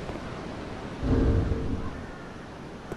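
A low magical whoosh swells up and fades.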